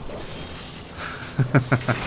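A burst of steam hisses sharply.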